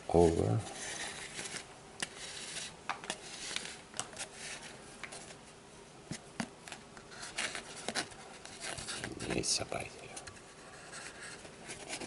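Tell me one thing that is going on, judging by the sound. Cord rustles and rubs against a cardboard tube.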